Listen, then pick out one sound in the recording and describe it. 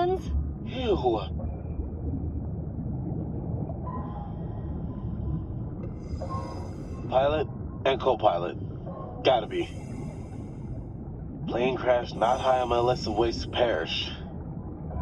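A man speaks through a diving mask radio.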